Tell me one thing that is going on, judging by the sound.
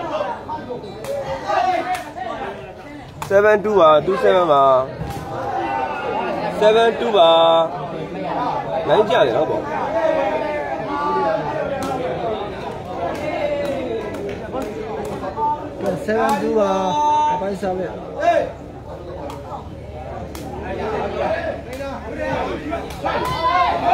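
A crowd chatters and cheers loudly outdoors.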